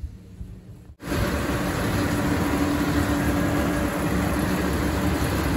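A tractor engine rumbles loudly close by.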